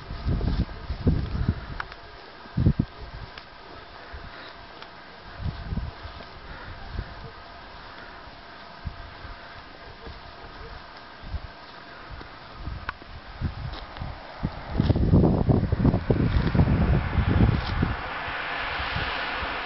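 Wind gusts buffet the microphone outdoors in bursts of low rumble.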